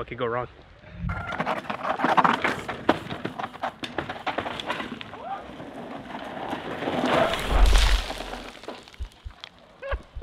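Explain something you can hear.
Bicycle tyres rush over a dirt trail.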